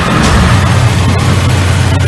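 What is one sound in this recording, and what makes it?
A fiery explosion bursts loudly.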